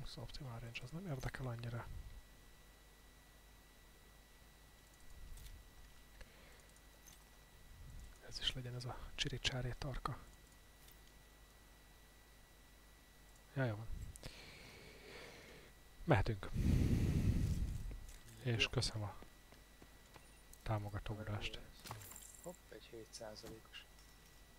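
A man talks casually into a close microphone, in short bursts.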